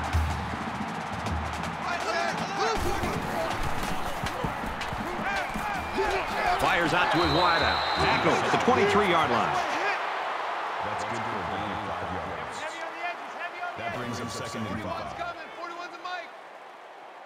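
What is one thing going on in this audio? A large stadium crowd roars in the background.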